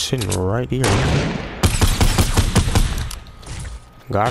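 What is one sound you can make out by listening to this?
An automatic rifle fires bursts.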